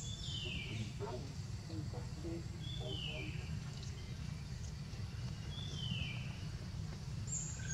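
A baby monkey chews on a leaf with soft crunching.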